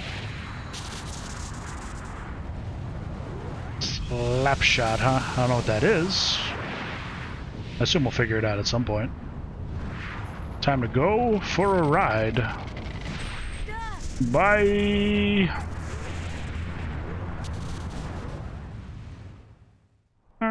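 A deep, roaring wind swirls steadily and fades away at the end.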